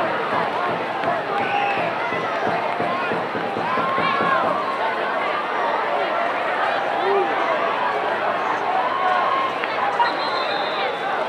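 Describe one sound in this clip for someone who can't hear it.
A large outdoor crowd cheers and shouts steadily.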